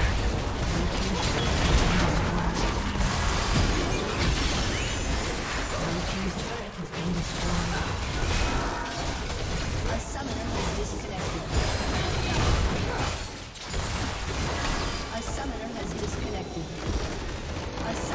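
Game spell effects crackle and whoosh in a busy fight.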